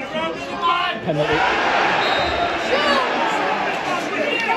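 A crowd of fans cheers and roars.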